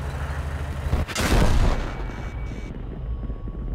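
A loud explosion booms and fades.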